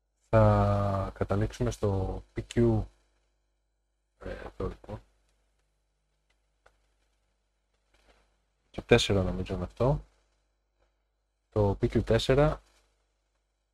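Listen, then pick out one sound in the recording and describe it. A middle-aged man talks calmly and close to a microphone, in short bursts with pauses.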